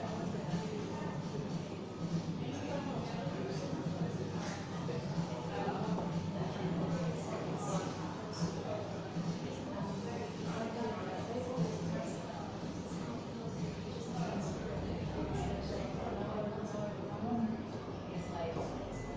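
A woman speaks calmly and close by, in a large echoing room.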